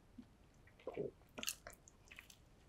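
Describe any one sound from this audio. A man bites into a soft burger close to a microphone.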